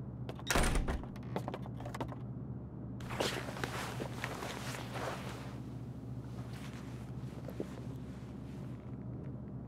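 Bedding rustles and shifts as a man clambers across a bed.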